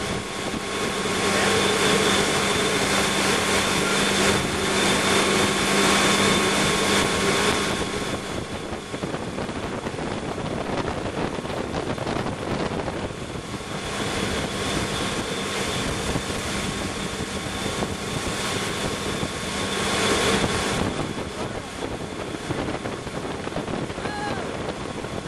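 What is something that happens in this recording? Water churns and splashes in the boat's wake.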